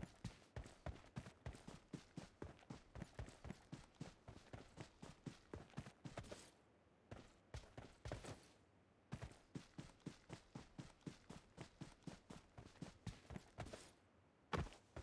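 Quick footsteps run steadily over ground.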